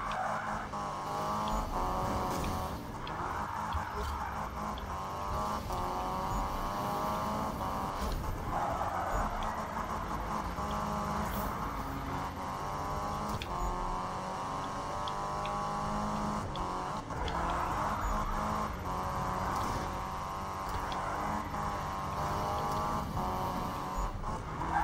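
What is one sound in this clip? A racing car engine roars at high revs throughout.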